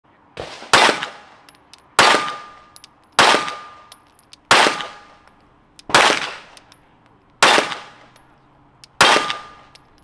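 A handgun fires loud shots at a steady pace outdoors, each echoing briefly.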